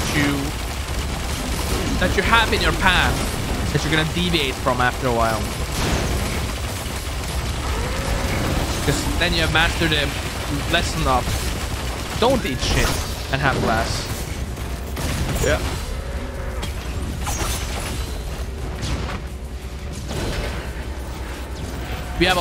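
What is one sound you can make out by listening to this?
Gunfire and explosions crackle from a game.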